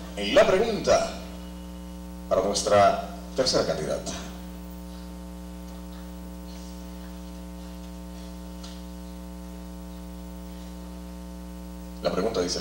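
A man speaks into a microphone with animation, heard through loudspeakers.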